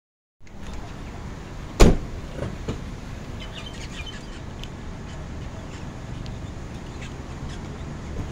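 Outdoor street noise with a low rumble goes on steadily.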